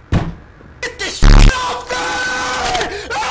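A television hisses loudly with static.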